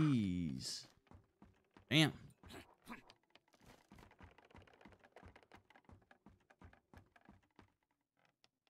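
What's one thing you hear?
Quick footsteps patter on a wooden floor.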